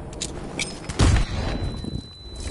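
A large explosion booms close by.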